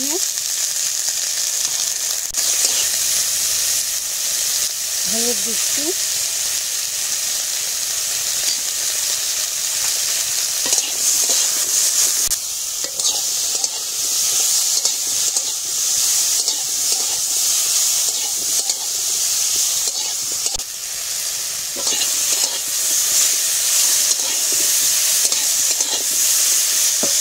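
Oil sizzles and hisses steadily as vegetables fry in a pan.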